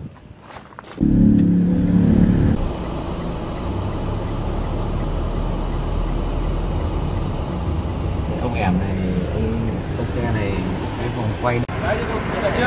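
A car drives along a road with a steady low rumble.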